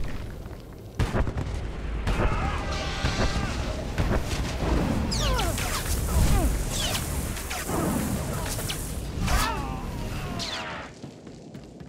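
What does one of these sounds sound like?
Laser swords hum and clash.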